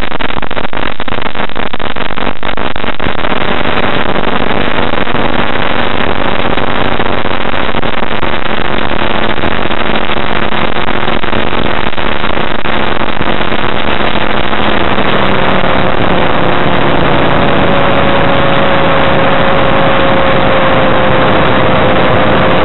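Wind roars past an open cockpit.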